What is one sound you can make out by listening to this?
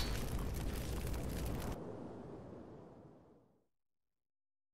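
Flames crackle and roar loudly, then fade away.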